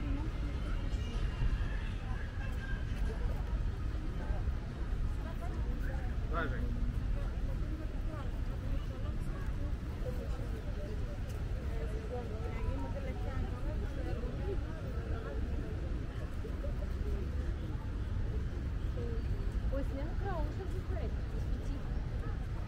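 Many people chatter at a distance outdoors.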